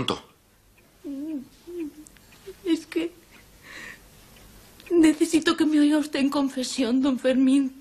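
A woman speaks in a trembling, tearful voice close by.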